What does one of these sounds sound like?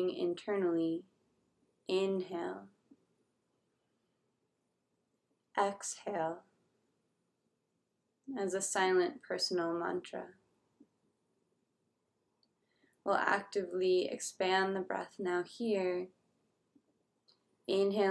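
A young woman speaks slowly and calmly close to a microphone, with long pauses.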